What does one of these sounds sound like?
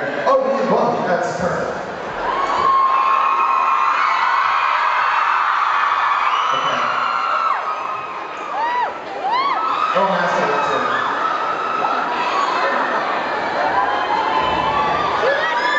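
An electric bass guitar plays loudly through an amplifier.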